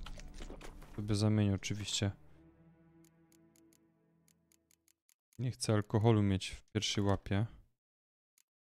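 A man talks into a microphone with animation, close by.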